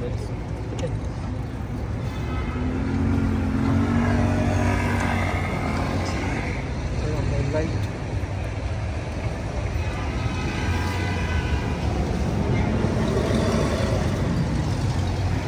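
City traffic hums and rumbles nearby.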